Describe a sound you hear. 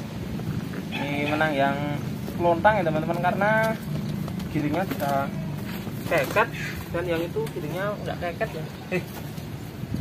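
Pigeons coo and warble close by.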